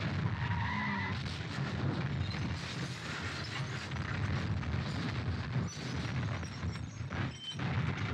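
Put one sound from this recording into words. A car crashes and tumbles with loud metal bangs.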